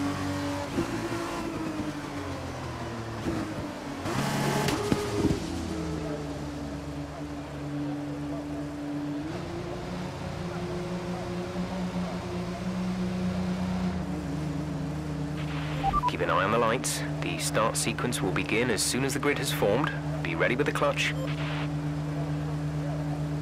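A race car engine hums and revs at low speed.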